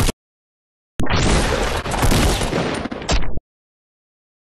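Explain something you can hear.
A gun fires shots in quick succession.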